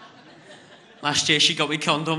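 A young man speaks with animation into a microphone in a large hall.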